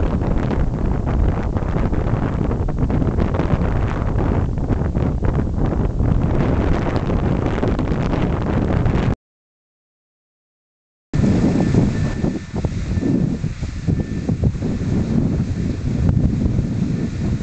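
Wind rumbles and buffets loudly outdoors.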